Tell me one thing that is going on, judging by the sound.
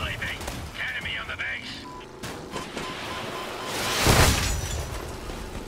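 A vehicle crashes and rolls over with a loud metallic bang.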